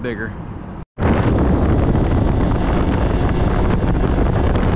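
A boat's outboard motor roars at high speed.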